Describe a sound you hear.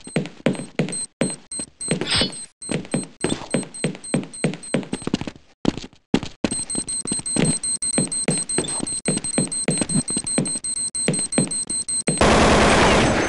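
Footsteps thud rhythmically on a hard floor.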